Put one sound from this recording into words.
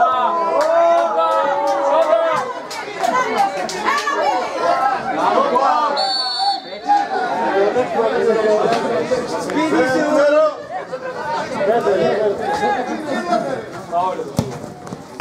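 Young players shout and call out to each other across an open outdoor pitch.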